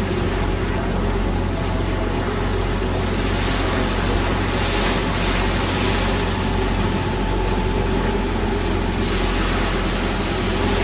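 Water splashes and rushes past a moving boat.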